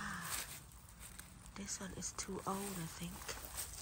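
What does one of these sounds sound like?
Dry leaves rustle as a hand brushes through them.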